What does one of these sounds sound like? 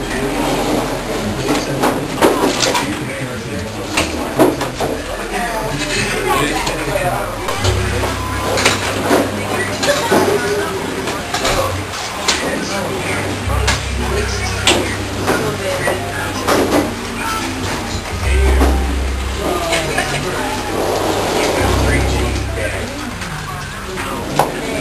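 A crowd of men and women chatters loudly all around in a busy echoing room.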